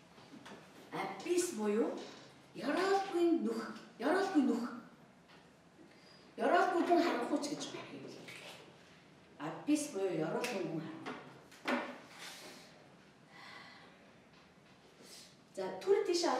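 A middle-aged woman speaks with animation into a microphone.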